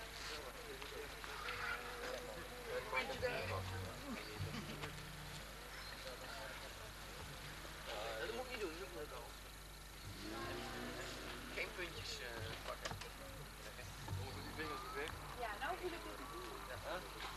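Several adults chat nearby outdoors.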